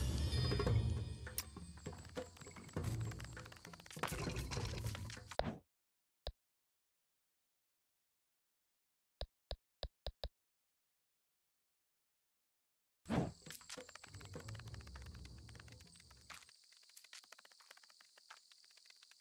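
Small insect feet skitter over dry ground.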